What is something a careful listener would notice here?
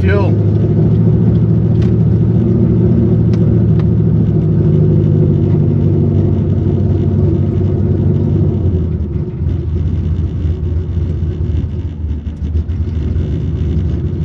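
A car engine hums steadily from inside the car, then quietens as the car slows.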